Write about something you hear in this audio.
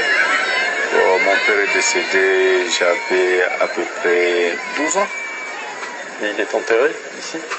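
A crowd of men shout, heard faintly through a small loudspeaker.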